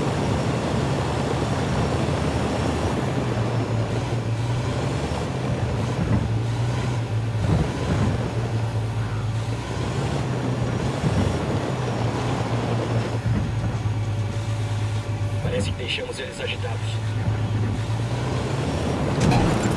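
An armoured vehicle's engine rumbles steadily as it drives.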